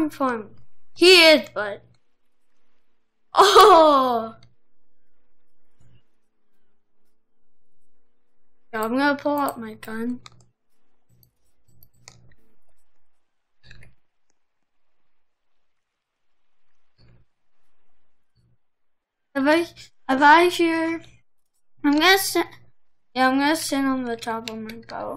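A boy speaks with animation, close to a microphone.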